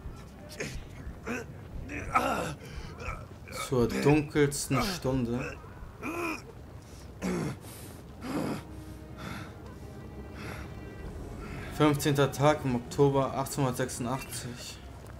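A man groans and shouts in anguish nearby.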